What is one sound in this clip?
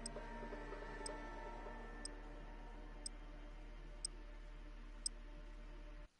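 A short high tick sounds once every second as a countdown.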